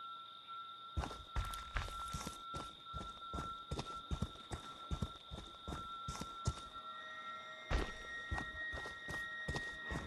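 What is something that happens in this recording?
Heavy footsteps crunch steadily on leaves and gravel.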